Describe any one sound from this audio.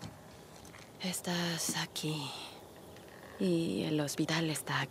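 A young woman speaks quietly to herself.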